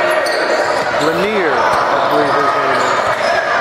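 Young male players shout across an echoing gym.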